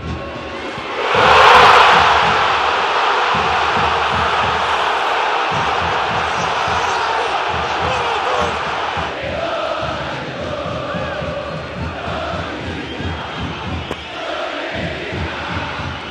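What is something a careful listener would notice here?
A large stadium crowd roars loudly in cheers, then slowly quietens.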